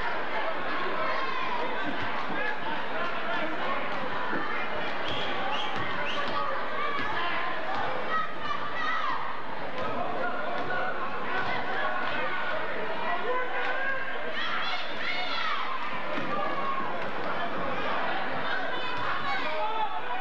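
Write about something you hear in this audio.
A crowd of spectators chatters and calls out in an echoing gym.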